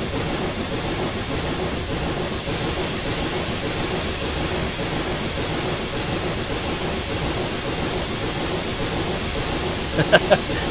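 A steam locomotive chugs and rumbles steadily along the tracks.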